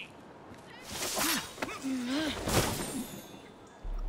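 Leaves rustle loudly as someone scrambles through a hedge.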